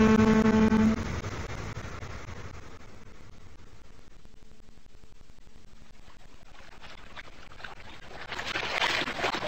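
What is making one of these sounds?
An old radio hisses softly with static.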